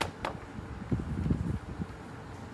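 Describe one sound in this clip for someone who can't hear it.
A laptop is set down on a wooden stand with a soft knock.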